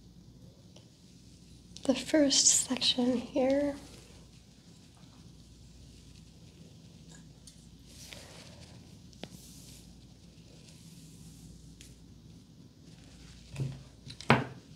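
Fingers and a comb rustle through hair.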